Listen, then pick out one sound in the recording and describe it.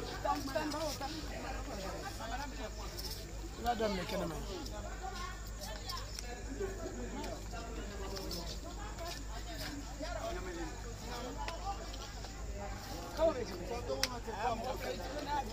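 Women chat and talk over one another in a lively crowd nearby.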